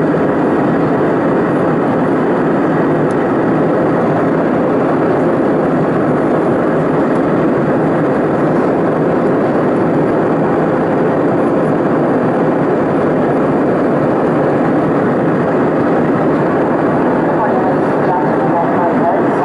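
Jet engines roar steadily inside an airliner cabin in flight.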